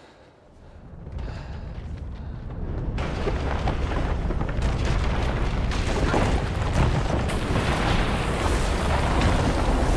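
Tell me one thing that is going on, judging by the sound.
Huge roots burst through stone with a deep, steady rumble and crashing debris.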